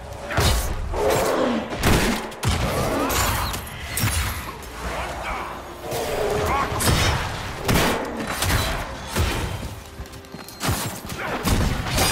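Weapons clash and spells burst in loud bursts of battle.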